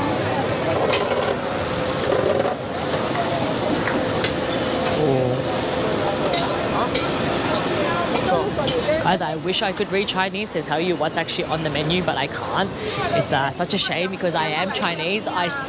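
A crowd murmurs in a busy street outdoors.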